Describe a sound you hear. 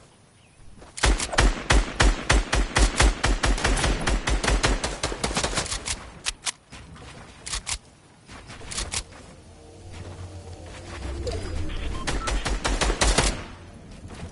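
Rapid gunfire rattles in bursts in a video game.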